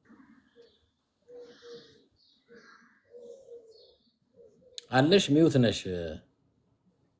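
A man speaks over an online call, quietly at first and then loudly close to the microphone.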